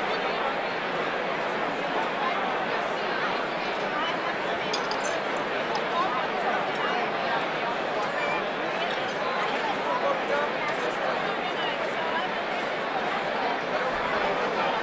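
A large crowd of men and women chatter loudly in a big echoing hall.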